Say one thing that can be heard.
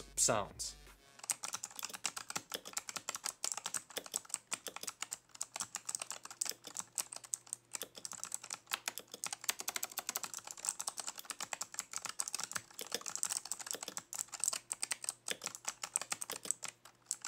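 Keyboard keys clack rapidly under fast typing.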